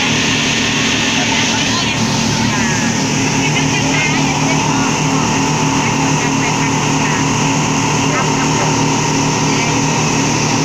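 Water rushes and splashes against the hull of a moving boat.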